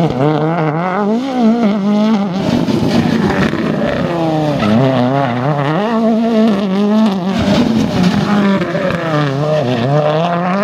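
Rally car engines roar and rev hard as cars speed past one after another.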